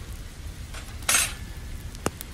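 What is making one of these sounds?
A metal grate clanks down onto a camp stove.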